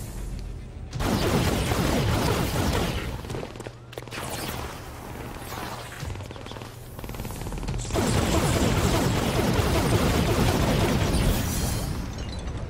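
Energy blasts crackle and roar in loud bursts.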